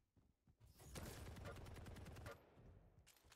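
A game rifle fires rapid shots.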